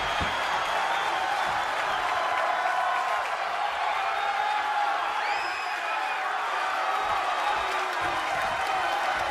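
A large crowd cheers and roars loudly throughout.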